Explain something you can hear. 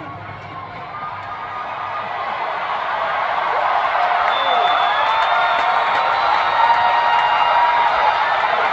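Many people in a crowd whistle.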